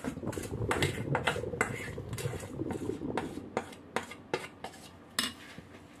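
A spoon scrapes batter from a metal pot in quick repeated strokes.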